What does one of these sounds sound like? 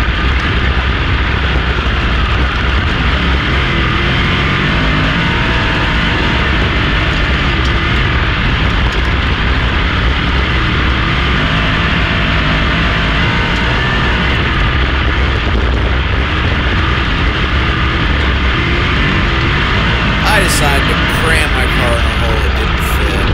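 Wind buffets loudly past the open cockpit.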